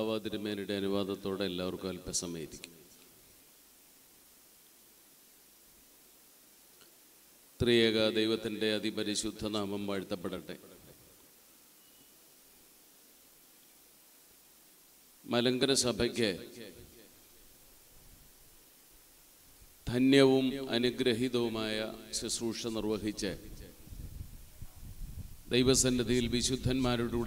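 An elderly man speaks slowly and solemnly through a microphone in a large echoing hall, with long pauses.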